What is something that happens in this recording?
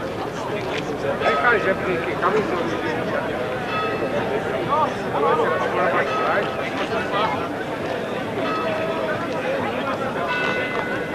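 A crowd chatters outdoors in the background.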